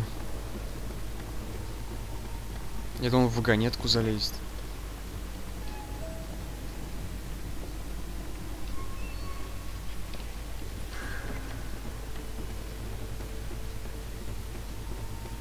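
A wooden ladder creaks.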